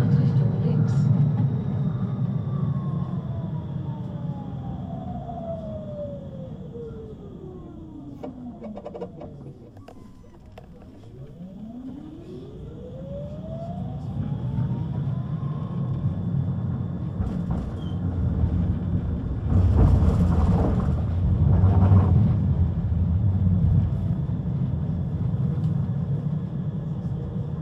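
A tram rumbles along inside the carriage.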